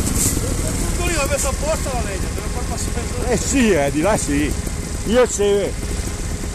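A man talks loudly over an engine.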